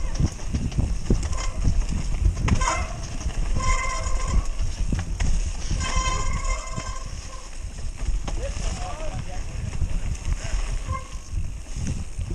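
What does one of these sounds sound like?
Bike tyres rumble and bump over a dirt trail.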